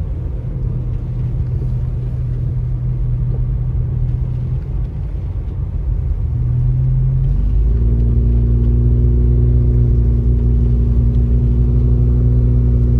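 Tyres crunch over snow on the road.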